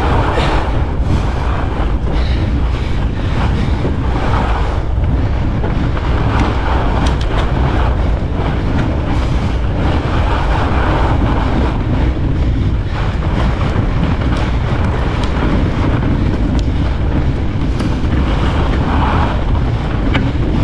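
Bicycle tyres crunch and hiss over packed snow.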